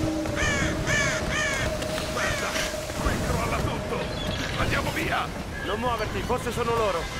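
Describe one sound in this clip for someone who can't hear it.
Seabirds cry repeatedly nearby.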